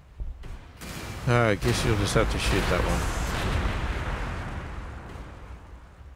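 A battle sound effect whooshes and rumbles.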